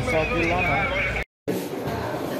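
Several people talk at once.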